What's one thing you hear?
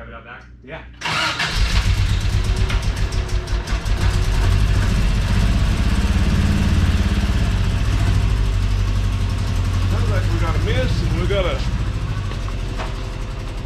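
A car engine starts and idles loudly.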